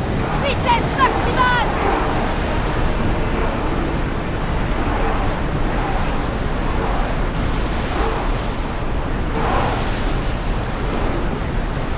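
Oars splash rhythmically in the water.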